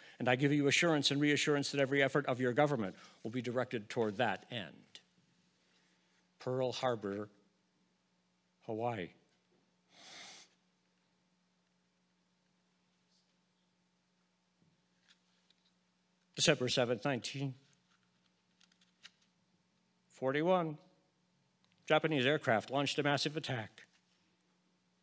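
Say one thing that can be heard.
An elderly man speaks slowly and calmly into a microphone, in bursts with long pauses.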